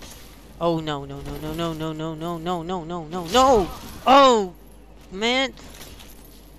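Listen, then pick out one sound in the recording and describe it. A young man vocalises loudly and playfully close to a microphone, with drawn-out rising and falling sounds.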